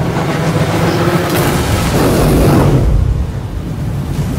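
A burst of fire whooshes loudly and then cuts off.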